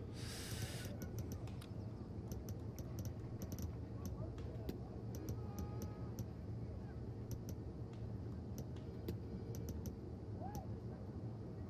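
Short, soft menu clicks tick now and then.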